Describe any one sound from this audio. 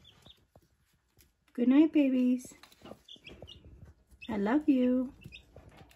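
Chicks cheep softly.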